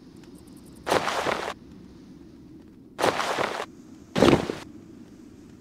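Game items drop into a bag with short rustling bursts.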